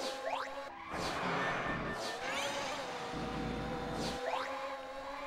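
Tyres skid and rumble over grass.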